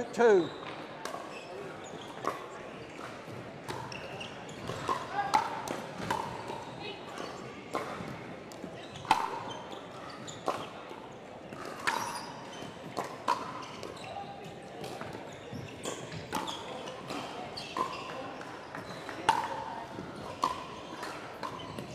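Paddles strike a plastic ball with sharp pops, back and forth.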